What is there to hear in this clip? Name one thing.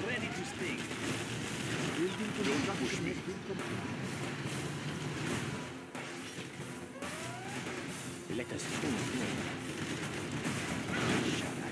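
Explosions boom in a game battle.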